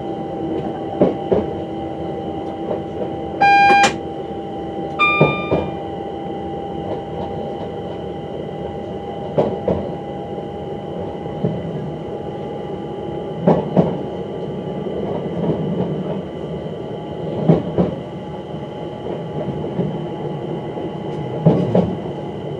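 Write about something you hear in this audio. Train wheels clack over rail joints at uneven intervals.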